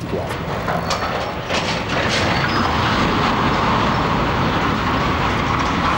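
A tall steel crane topples and crashes to the ground with a loud metallic rumble.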